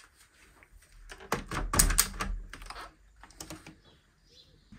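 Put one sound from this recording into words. Wooden shutters rattle and knock as they are pushed open.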